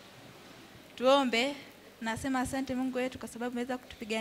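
A girl speaks with animation into a microphone, heard through a loudspeaker in an echoing hall.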